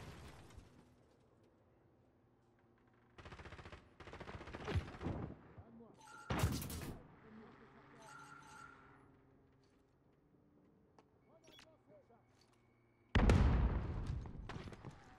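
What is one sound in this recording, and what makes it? A rifle fires in loud bursts of rapid shots.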